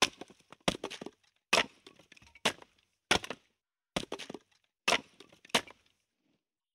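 A hatchet chops wood with sharp, quick knocks.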